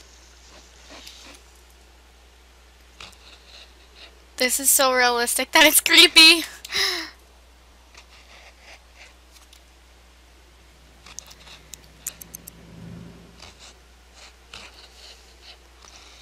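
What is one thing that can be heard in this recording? A knife scrapes and cuts into a pumpkin.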